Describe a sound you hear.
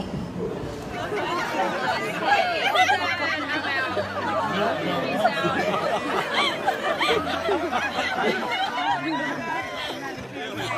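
A crowd of guests laughs and chatters nearby.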